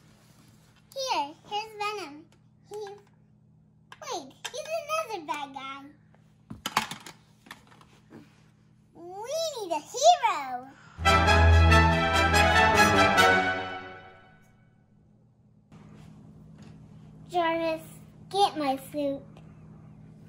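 A young boy talks excitedly close by.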